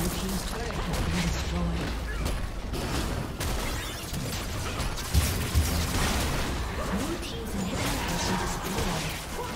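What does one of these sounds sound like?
Spell effects crackle and blast in a fast game battle.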